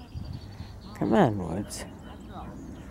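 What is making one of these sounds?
A man calls out to a dog across an open field.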